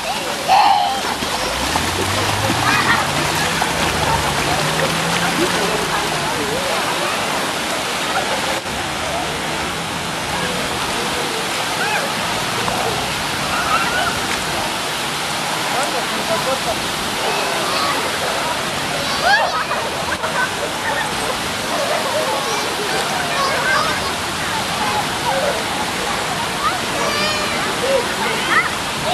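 Young children shout and squeal playfully nearby.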